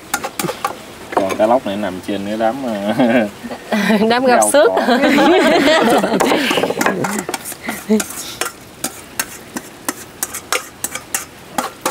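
A spoon scrapes and clinks against a metal bowl.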